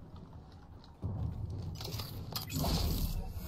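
Gunfire bursts out.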